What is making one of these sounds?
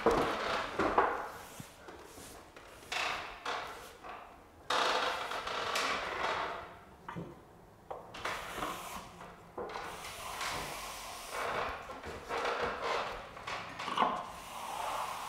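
A trowel scrapes filler along a wall in short, rasping strokes.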